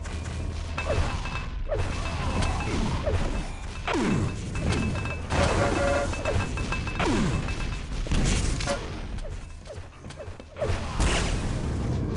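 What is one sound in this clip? Game gunfire and blasts ring out repeatedly.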